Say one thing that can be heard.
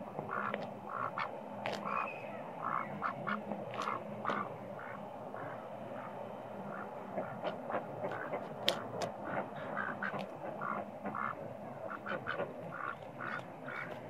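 A duck's webbed feet pat softly on a hard path.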